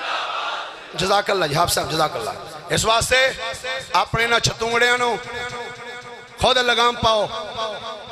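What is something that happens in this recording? A man chants in a loud, sustained voice through a microphone.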